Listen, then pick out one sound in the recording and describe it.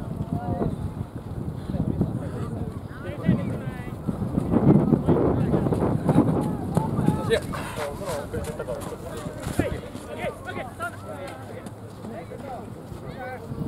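Young men shout to each other across an open field.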